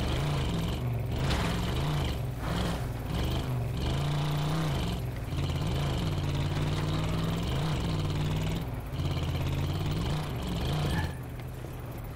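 A vehicle engine drones steadily, then stops.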